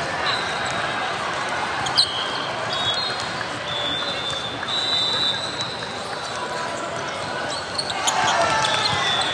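Shoes squeak sharply on a hard court in a large echoing hall.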